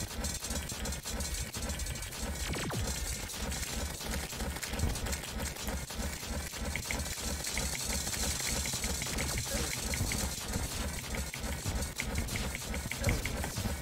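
Rapid game weapon shots fire over and over.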